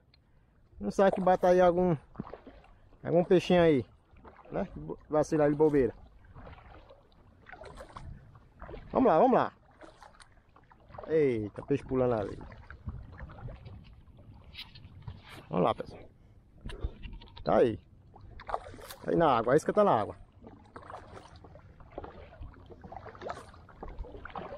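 A paddle splashes through water.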